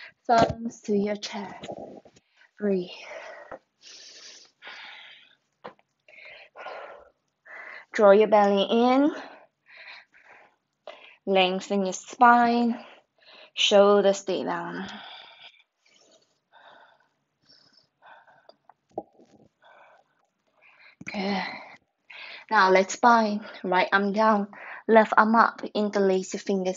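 A young woman talks calmly and clearly, close to the microphone.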